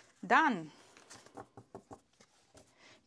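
Playing cards riffle and tap softly.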